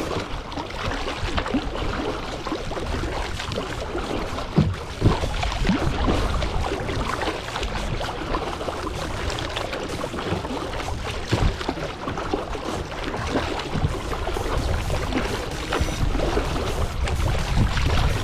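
Water splashes and churns against the bow of a moving kayak.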